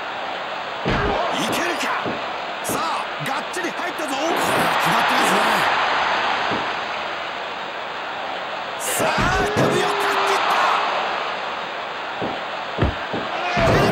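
Bodies slam heavily onto a wrestling mat.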